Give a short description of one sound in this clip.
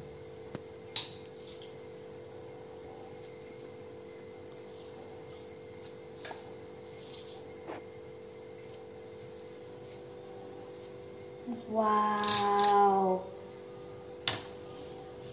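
A metal knife clinks against a cake plate.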